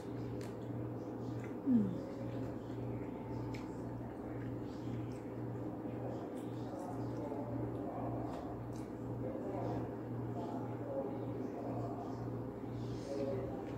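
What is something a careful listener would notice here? A young woman slurps and chews food close by.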